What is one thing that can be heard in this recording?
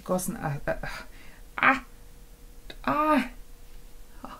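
A young woman speaks brightly and close to a microphone.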